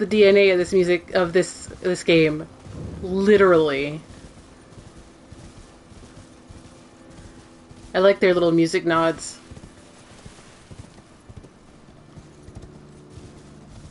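Footsteps patter through grass.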